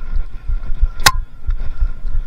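A bicycle rattles sharply as it jolts over a bump.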